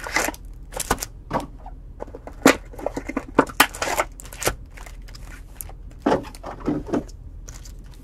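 Card packs click and tap as they are stacked.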